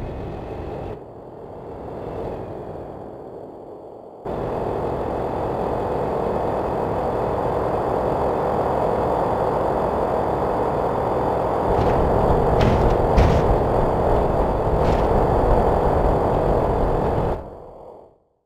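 A car engine roars steadily as the car drives fast.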